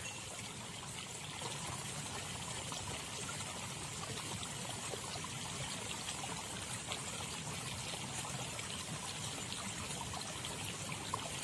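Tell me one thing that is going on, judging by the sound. Water flows and ripples gently outdoors.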